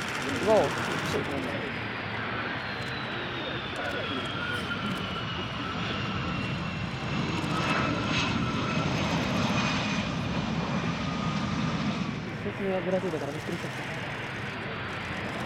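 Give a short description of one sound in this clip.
A jet engine roars loudly and steadily, with a high whine that slowly falls.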